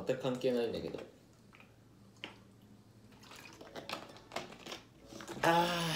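A young man gulps water.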